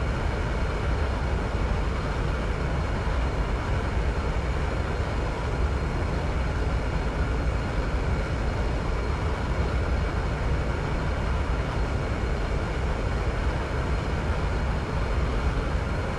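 A jet engine roars steadily from inside a cockpit.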